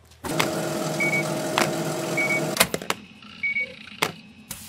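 A checkout scanner beeps.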